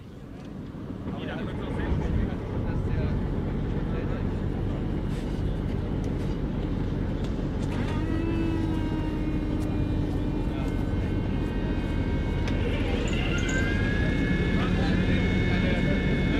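Armoured vehicle engines idle with a steady low rumble.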